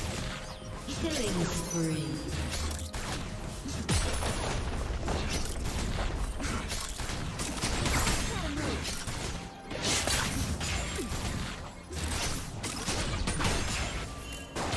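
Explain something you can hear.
Spell effects crackle and burst in a game battle.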